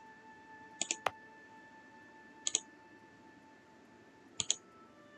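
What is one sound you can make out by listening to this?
Short, sharp interface clicks sound in quick pairs.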